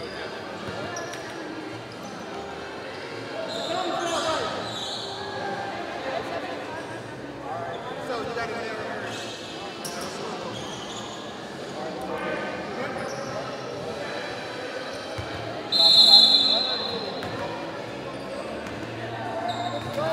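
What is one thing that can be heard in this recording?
A crowd of people chatters and calls out in a large echoing gym.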